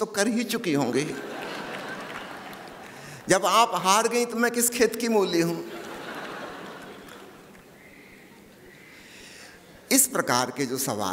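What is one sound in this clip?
An elderly man speaks into a microphone with animation, in a reverberant hall.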